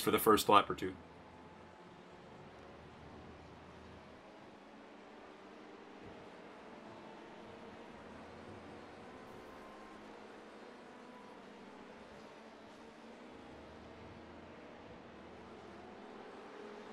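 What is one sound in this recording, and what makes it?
A racing car engine hums faintly and steadily.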